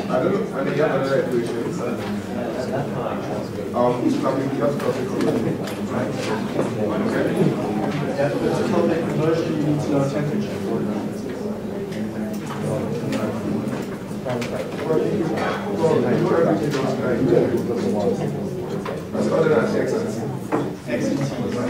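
A man lectures steadily in a large room with a slight echo.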